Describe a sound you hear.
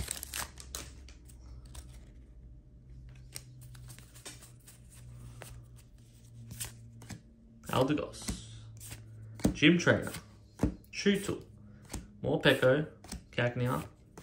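Playing cards slide and flick against each other.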